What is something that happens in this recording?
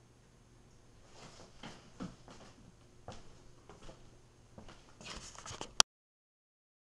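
Footsteps and clothes rustle close by.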